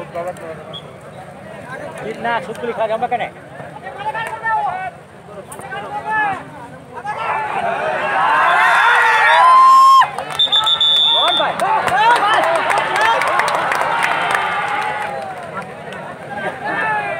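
A crowd of men shouts and cheers loudly outdoors.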